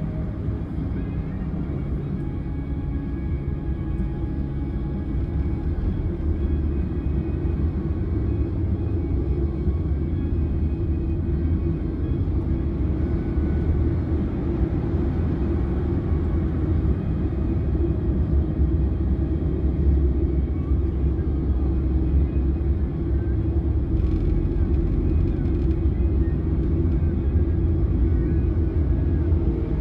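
A car engine hums steadily from inside the car as it drives slowly in heavy traffic.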